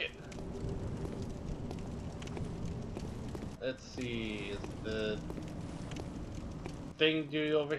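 Footsteps crunch on stone paving.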